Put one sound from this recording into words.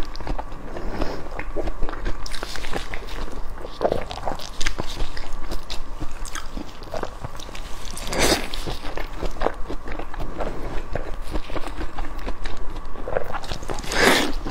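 A young woman slurps and chews food wetly, close to a microphone.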